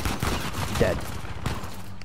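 A gun fires a burst of shots.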